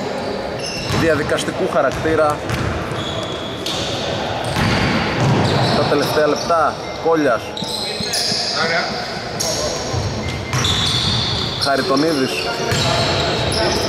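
Young men shout and call out to each other across an echoing hall.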